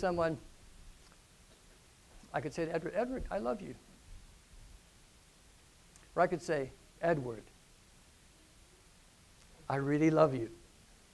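A middle-aged man speaks calmly through a clip-on microphone in short phrases with pauses.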